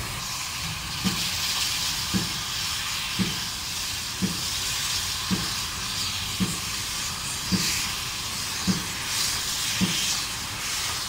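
A steam locomotive chuffs in a slow, steady rhythm.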